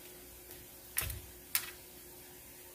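A knife taps against a countertop.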